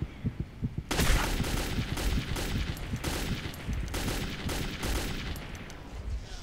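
A rifle fires loud bursts of shots that echo.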